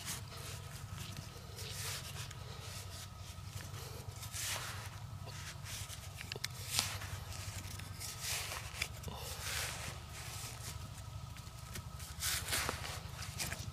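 A small trowel scrapes and digs into dry soil.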